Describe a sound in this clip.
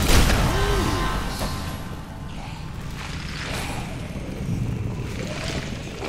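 A bright chime rings out and swells.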